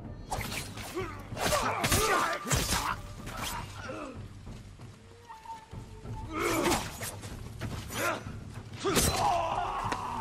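Swords clash sharply several times.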